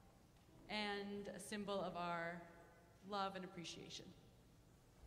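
A woman speaks animatedly into a microphone.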